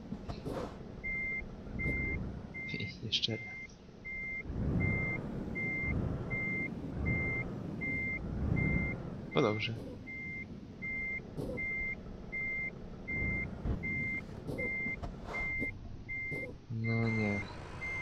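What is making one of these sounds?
A truck's reversing alarm beeps in a fast, even rhythm.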